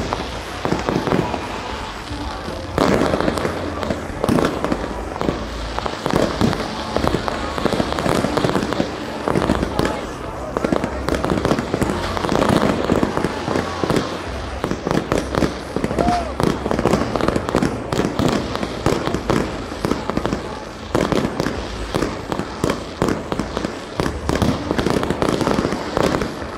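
Fireworks bang and crackle loudly overhead.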